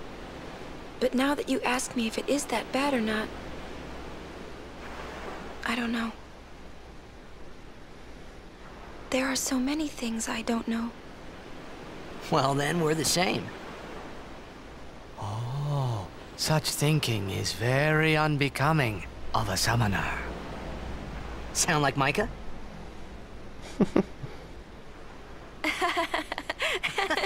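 A young woman speaks softly and thoughtfully.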